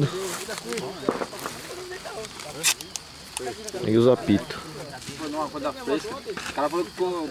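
Several men talk with animation close by, outdoors.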